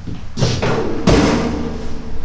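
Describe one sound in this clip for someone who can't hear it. A metal lid swings open with a thump.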